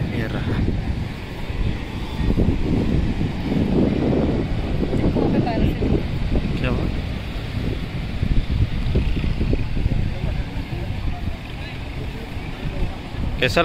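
Ocean waves wash onto the shore.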